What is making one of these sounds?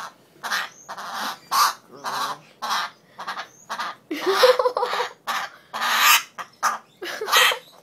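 A cockatoo screeches loudly in harsh, repeated bursts close by.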